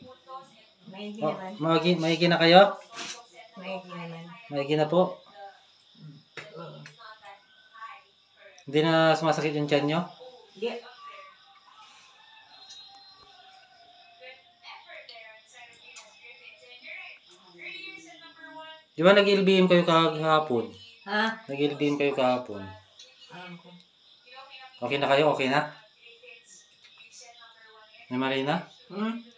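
An elderly woman speaks close by, in short bursts with pauses.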